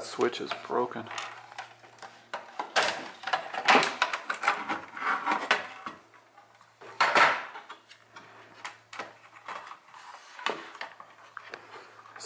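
Plastic parts clatter and click as they are handled.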